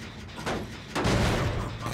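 A generator clanks and rattles as it is worked on.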